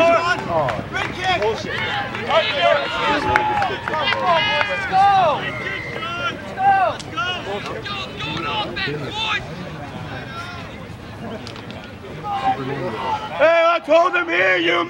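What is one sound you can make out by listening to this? Several men talk and call out loudly close by, outdoors.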